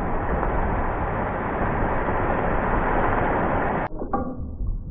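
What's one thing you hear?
A boat skims and slaps across the water with a rushing splash.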